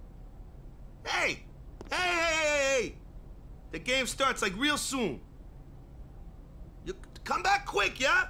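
A young man shouts out loudly with excitement.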